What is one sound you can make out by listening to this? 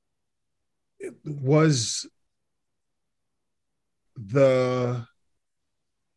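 A second man speaks briefly over an online call.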